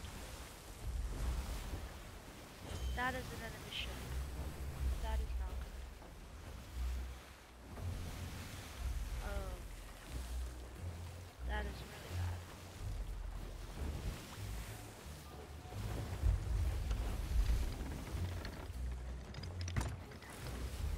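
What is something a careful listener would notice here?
Waves wash and splash against a wooden ship's hull.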